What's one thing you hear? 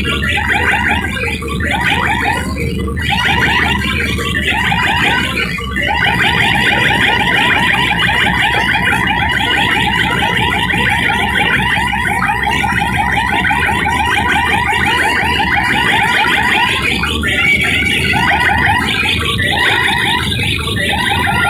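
Loud dance music with a heavy beat plays over loudspeakers.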